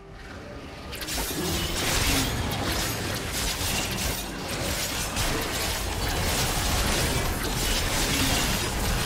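Video game spell effects crackle, whoosh and thud in a busy battle.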